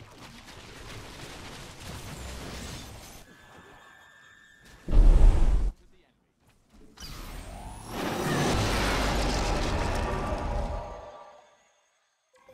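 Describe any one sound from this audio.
Creatures screech and battle noises clash in a fight.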